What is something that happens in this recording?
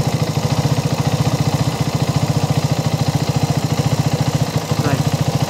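An engine idles close by with a fast, steady, low thumping.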